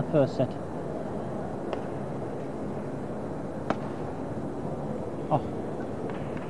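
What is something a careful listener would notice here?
Badminton rackets smack a shuttlecock back and forth in a large hall.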